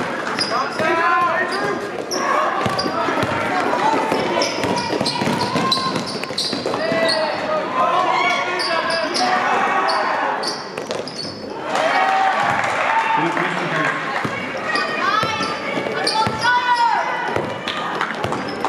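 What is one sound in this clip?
Young players shout and call out in an echoing hall.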